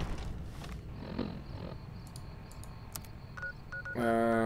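A handheld device clicks and beeps as its buttons are pressed.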